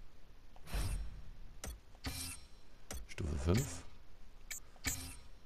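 Short electronic whooshes and clicks sound again and again in quick succession.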